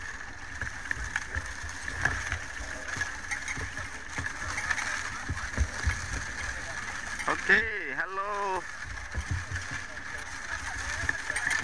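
An ox-drawn cart with wooden wheels rumbles and knocks over a dirt track.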